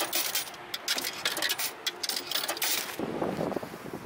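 Cables rattle and knock against metal.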